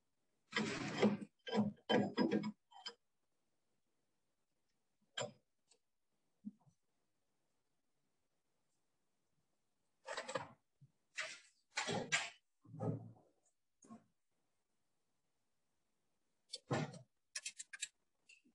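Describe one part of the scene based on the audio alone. A metal key clicks and rattles as a lathe chuck is tightened.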